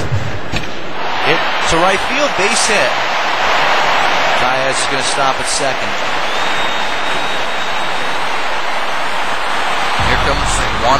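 A stadium crowd cheers loudly and then settles.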